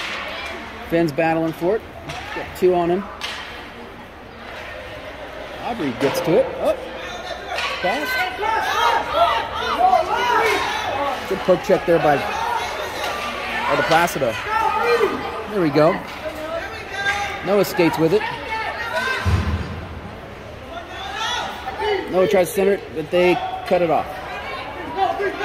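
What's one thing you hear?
Spectators talk and call out in a large echoing rink.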